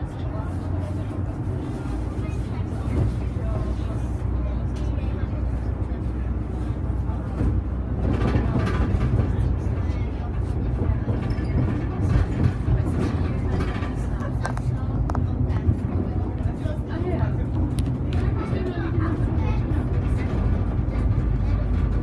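A bus engine hums low and steady from inside the bus.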